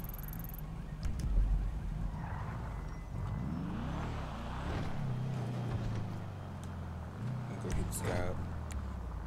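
A car engine revs and roars as the car pulls away.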